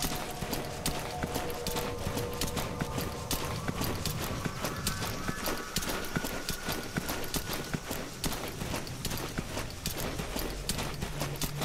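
A body crawls and scrapes across dry grass and dirt.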